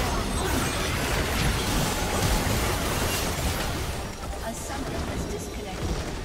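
Video game spell effects crackle and clash in a busy battle.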